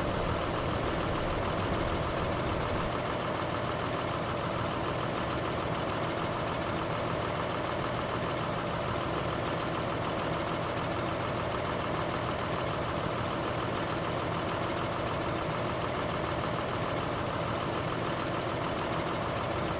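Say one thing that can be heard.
A tractor engine runs with a steady rumble.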